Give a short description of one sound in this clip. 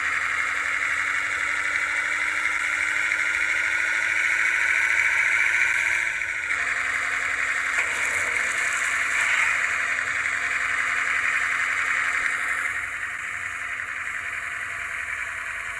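A bus engine drones steadily, its pitch slowly rising and then dropping sharply as it shifts gear.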